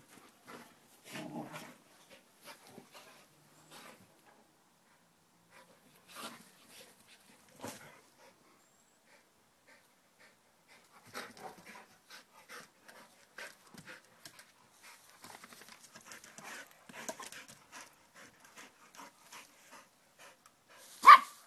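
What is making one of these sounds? A dog rustles through leafy bushes.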